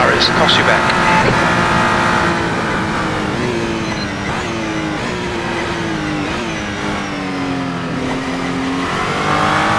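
A race car engine roars steadily, its pitch sinking and jumping up as it shifts down through the gears.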